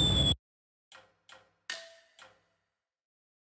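A game menu beeps softly a few times.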